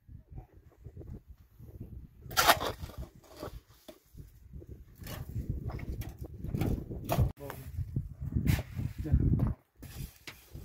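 A shovel scrapes through wet mortar and gravel.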